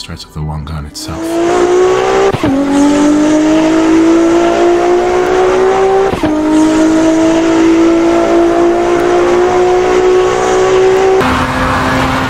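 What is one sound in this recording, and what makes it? A sports car engine revs higher and higher, dropping in pitch at each gear shift.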